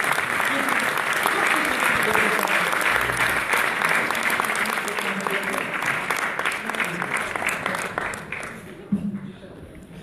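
An audience applauds loudly in a large hall, then the clapping dies away.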